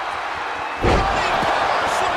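A body slams onto the ring mat with a heavy thud.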